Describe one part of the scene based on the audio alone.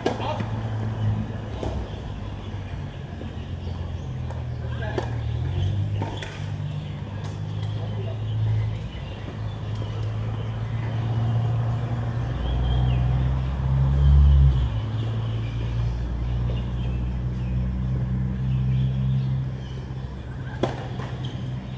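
A tennis ball is struck with sharp pops, outdoors.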